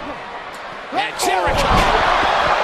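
A body thuds hard onto the floor.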